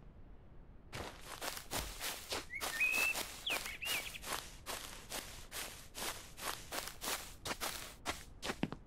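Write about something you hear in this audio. Footsteps run quickly over grass and pavement.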